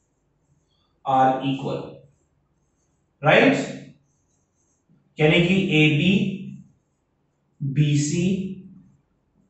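A young man speaks calmly and clearly, close by, in short phrases.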